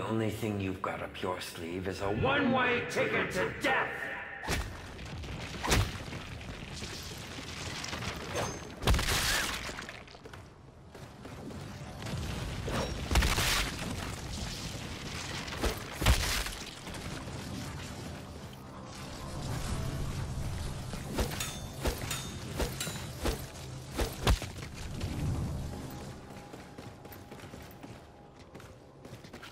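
A gun fires in rapid bursts, close by.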